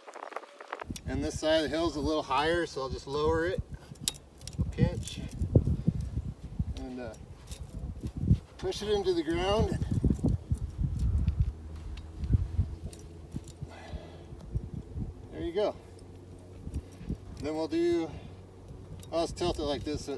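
A man talks calmly outdoors, close by.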